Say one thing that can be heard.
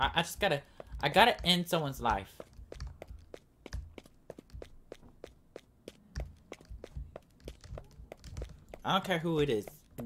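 Quick footsteps run on a hard floor.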